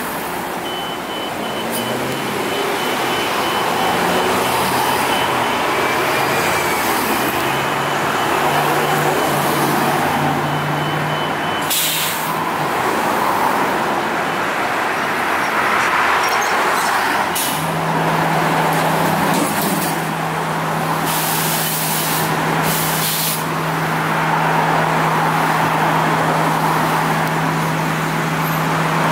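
A bus engine idles with a steady low hum close by.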